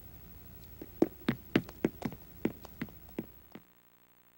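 Footsteps tap quickly across a floor.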